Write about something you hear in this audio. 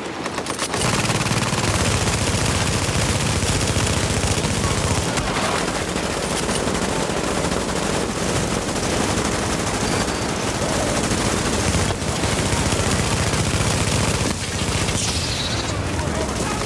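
Guns fire in rapid bursts nearby.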